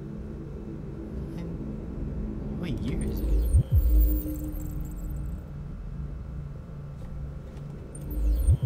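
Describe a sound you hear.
A young man talks calmly through a microphone.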